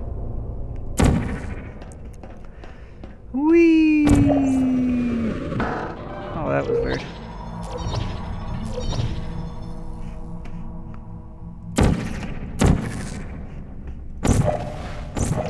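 A portal gun fires with sharp zaps.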